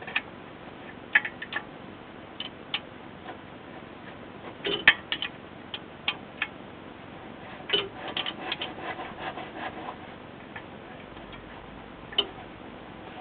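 A hand taps and knocks on a metal wheel hub with sharp clicks.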